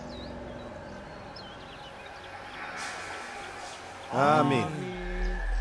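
A man speaks loudly, addressing a crowd outdoors.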